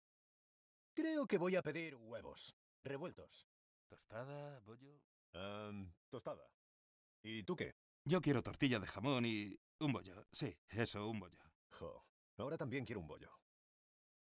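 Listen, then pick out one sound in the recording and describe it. A second young man answers casually nearby.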